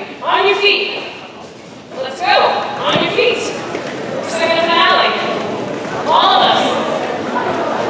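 A band plays music in a large echoing hall.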